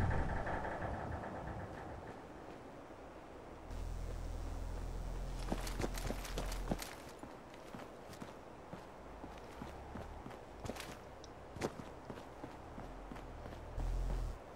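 Footsteps crunch over concrete and gravel.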